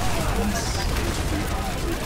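Game explosions boom.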